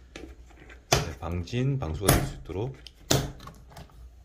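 Plastic latches snap open with sharp clicks.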